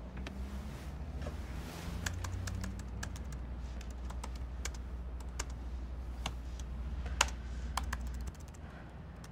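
Fingers tap quickly on a laptop keyboard.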